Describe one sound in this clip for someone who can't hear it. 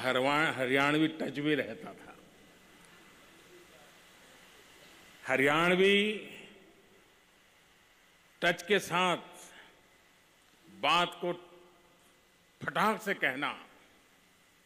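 An elderly man speaks slowly and earnestly into a microphone, with pauses between phrases.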